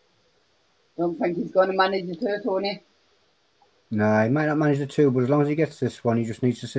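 A man talks over an online call.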